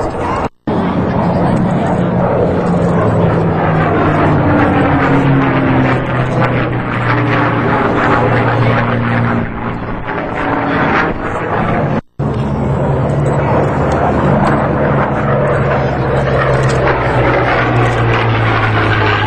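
A P-40 fighter's piston engine drones overhead, its pitch dropping as it passes.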